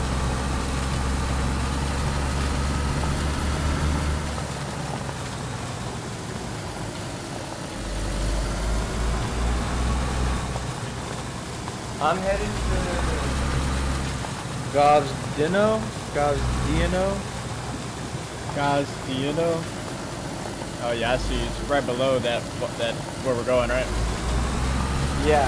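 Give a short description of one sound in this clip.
A car engine hums low as the car drives slowly along a gravel track.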